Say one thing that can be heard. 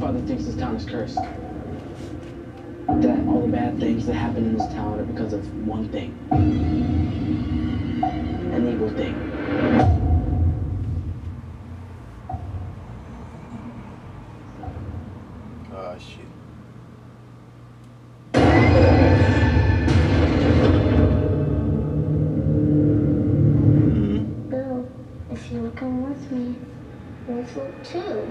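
Voices speak in a movie soundtrack through a speaker.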